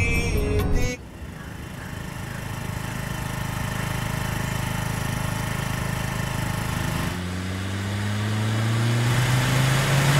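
A scooter engine hums steadily as the scooter rides along.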